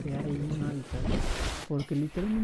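Water splashes loudly as a swimmer breaks the surface.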